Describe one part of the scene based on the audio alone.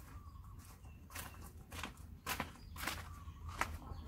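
A man's footsteps scuff on grass and dirt.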